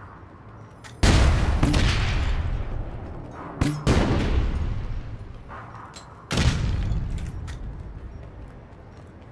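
Explosions boom and rumble away.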